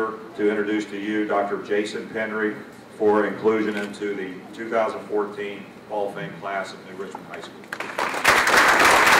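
A man speaks into a microphone, announcing calmly.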